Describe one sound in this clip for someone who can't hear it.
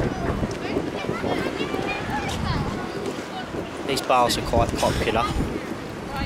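Young people chatter and call out nearby.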